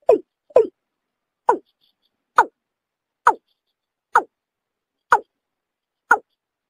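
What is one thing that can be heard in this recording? A bird calls with short, sharp croaks, repeated at an even pace.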